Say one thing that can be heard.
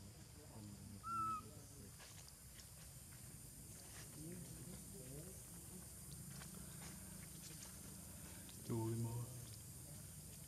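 A baby monkey squeaks and chirps close by.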